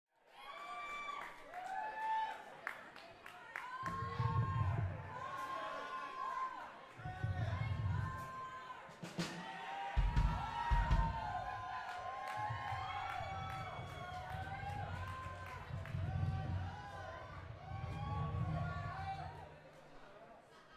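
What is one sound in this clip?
A rock band plays loudly with electric guitars and drums in a large echoing hall.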